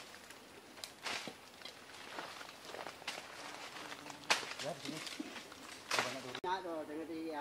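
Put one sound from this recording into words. Leaves and branches rustle as a man climbs a tree.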